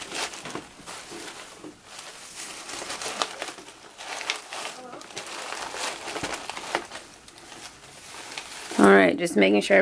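Plastic grass rustles and crinkles under hands.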